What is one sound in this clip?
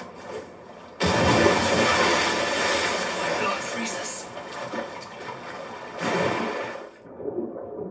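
Water churns and splashes as someone swims.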